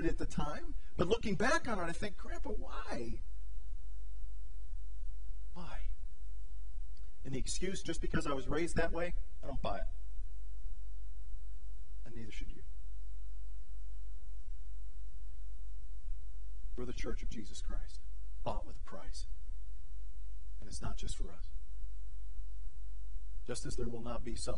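A middle-aged man speaks with animation through a microphone, with long pauses.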